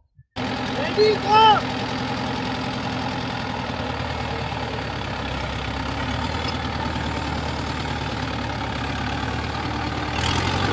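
A tractor engine runs with a steady diesel chugging.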